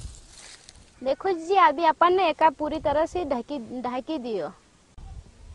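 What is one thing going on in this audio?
A woman sings nearby.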